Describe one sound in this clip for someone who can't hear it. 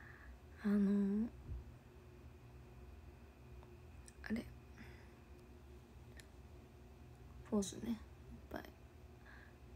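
A young woman speaks softly in short bursts, close to a microphone.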